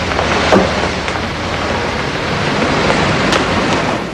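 Footsteps tap down a stairway.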